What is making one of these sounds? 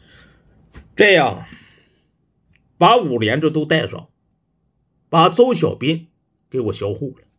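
A young man speaks close to a microphone with animated, expressive delivery.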